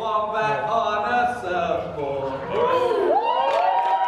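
A group of young men and women sing together in harmony.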